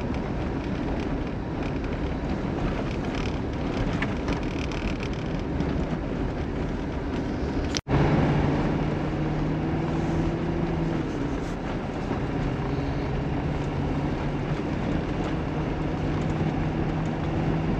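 Tyres crunch over packed snow.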